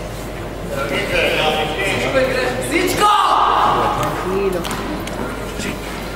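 A tennis ball is struck with a racket in a large hall.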